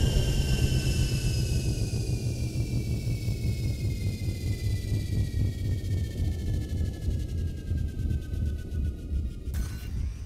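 A spacecraft engine rumbles low and steadily.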